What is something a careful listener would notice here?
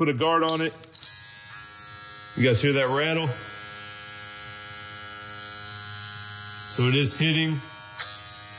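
An electric hair clipper hums steadily.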